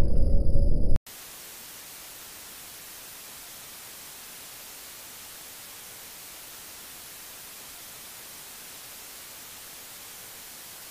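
Static hisses steadily and softly.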